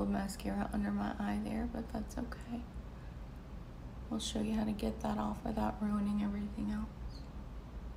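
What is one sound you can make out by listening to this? A woman talks calmly and close by, as if into a microphone.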